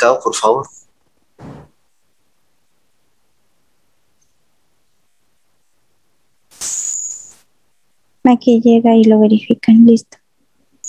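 An elderly woman speaks over an online call.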